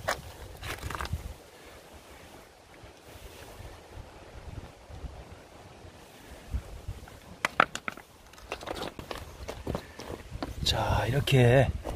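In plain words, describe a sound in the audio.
Smooth stones click and scrape as a hand picks through them.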